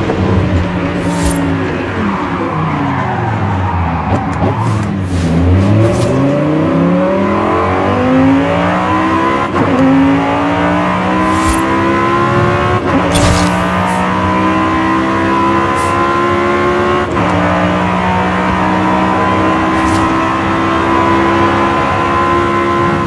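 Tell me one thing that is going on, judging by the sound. A car engine slows to a low rumble, then revs hard and climbs through the gears as the car speeds up.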